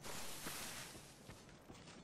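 A blade whooshes through the air.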